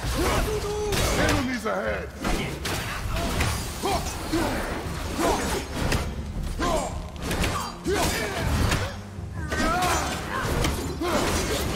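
Game combat sounds clash and thud with heavy blows.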